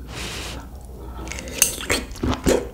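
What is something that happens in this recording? A young woman bites into soft food with a wet squelch.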